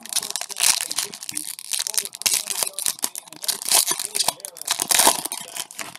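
A plastic bag crinkles and rustles between fingers.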